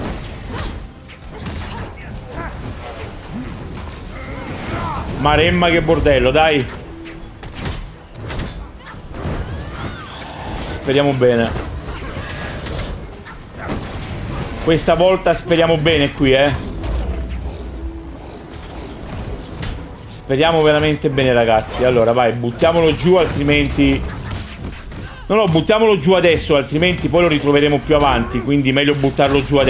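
Blows and energy blasts crack and thud in a fast fight.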